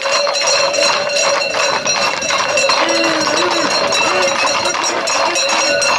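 Horses' hooves clatter on a road.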